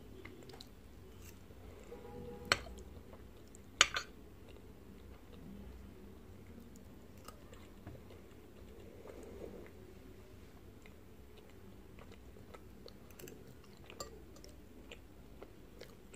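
A young woman chews food wetly, close to a microphone.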